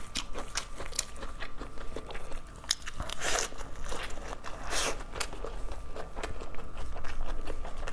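A young woman chews crunchy food loudly close to a microphone.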